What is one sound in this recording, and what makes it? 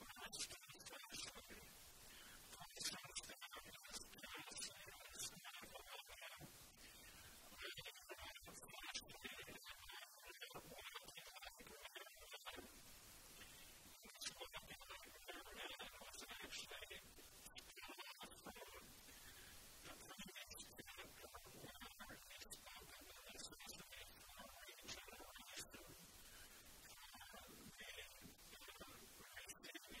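An elderly man reads aloud calmly through a microphone in an echoing room.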